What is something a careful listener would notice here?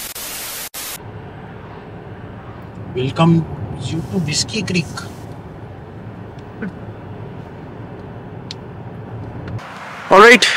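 A car engine hums steadily while driving on a road.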